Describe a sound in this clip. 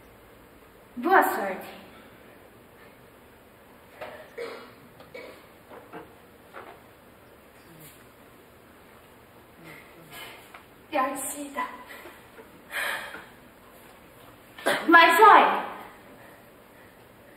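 A child speaks loudly on a stage, heard from a distance.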